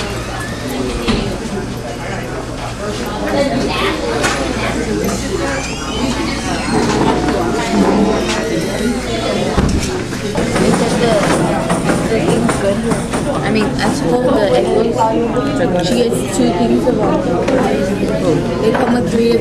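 Many voices of men and women chatter throughout a busy room.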